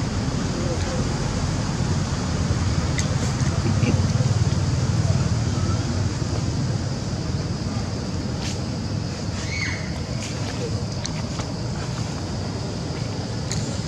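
A monkey chews on a fruit up close.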